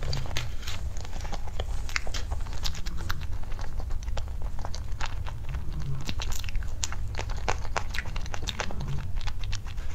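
A young woman chews soft food with wet, smacking sounds close to a microphone.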